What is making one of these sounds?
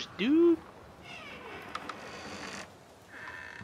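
A wooden door creaks slowly open.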